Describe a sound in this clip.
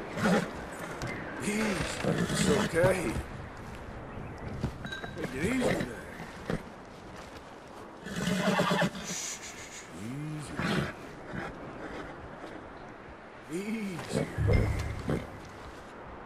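A man speaks softly and calmly to a horse.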